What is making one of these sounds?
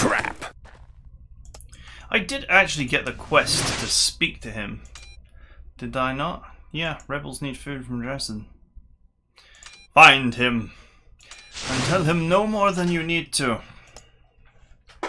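An adult man talks calmly through a microphone.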